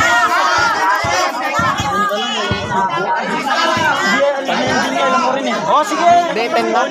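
A crowd of young men and women shout and cheer outdoors.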